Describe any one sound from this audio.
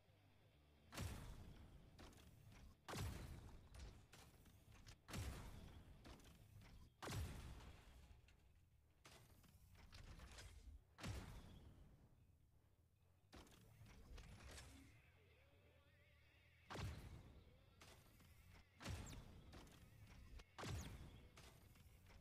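Loud weapon blasts boom again and again, each one ringing out.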